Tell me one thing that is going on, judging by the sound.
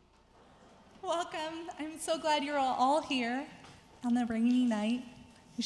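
A woman speaks clearly into a microphone in a large hall.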